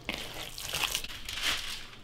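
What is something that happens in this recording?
Paper crinkles and rustles as it is folded.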